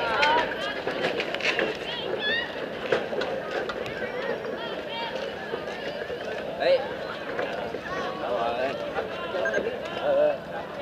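Young girls chatter and call out loudly outdoors.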